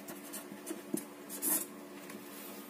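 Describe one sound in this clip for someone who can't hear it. A felt-tip pen scratches across paper.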